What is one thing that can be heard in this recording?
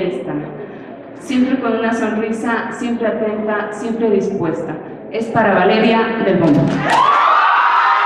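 A woman speaks with animation into a microphone over loudspeakers.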